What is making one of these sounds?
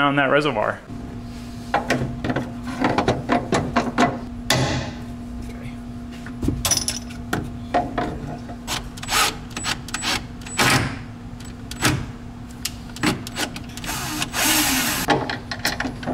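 Metal parts click and knock as they are fitted.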